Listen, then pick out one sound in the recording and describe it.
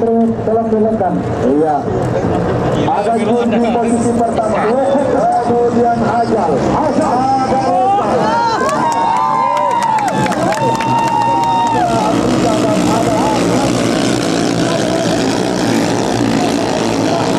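Racing boat engines roar and whine at high speed.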